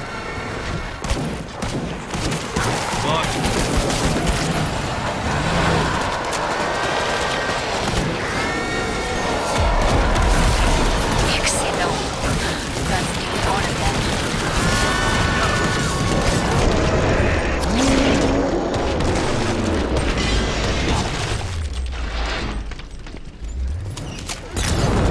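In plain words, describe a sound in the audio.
Rapid gunfire bursts out in loud, repeated shots.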